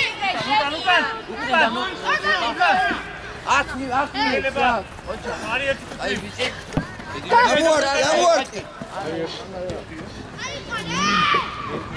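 A football is kicked on a pitch with a dull thud.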